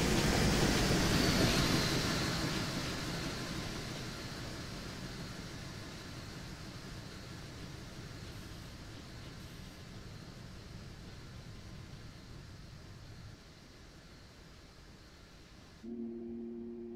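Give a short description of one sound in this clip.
A long train rumbles past on the rails and fades into the distance.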